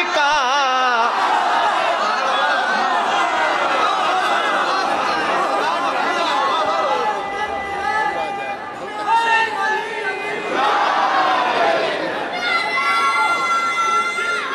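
A young man sings with a wavering voice through a loudspeaker.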